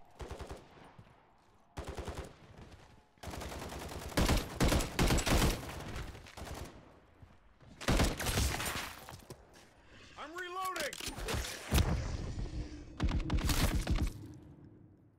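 Rapid bursts of gunfire crack close by.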